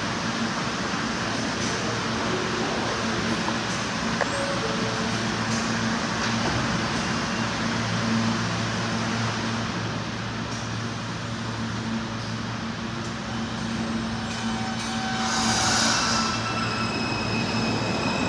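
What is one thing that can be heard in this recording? A subway train hums steadily while standing at the platform.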